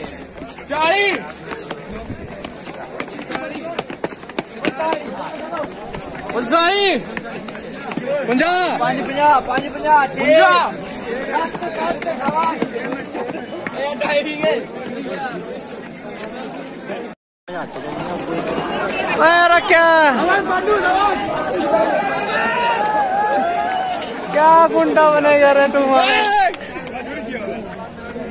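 Young men shout and cheer loudly close by.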